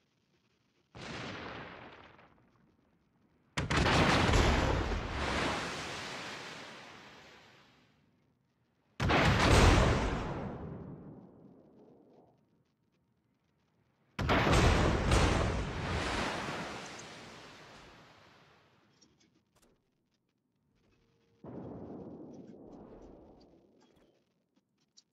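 Heavy naval guns fire loud booming salvos that rumble and fade.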